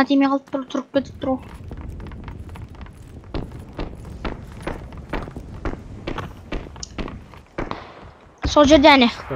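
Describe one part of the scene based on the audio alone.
Footsteps thud quickly.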